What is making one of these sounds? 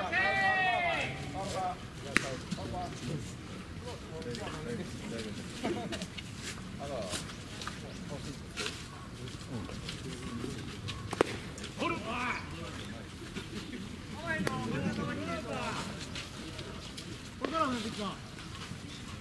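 Young men call out loudly across an open field.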